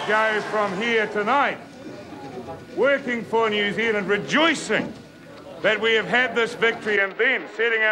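A middle-aged man speaks with animation into microphones.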